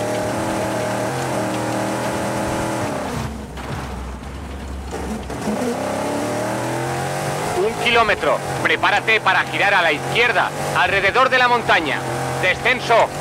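A car engine revs hard, rising and falling in pitch.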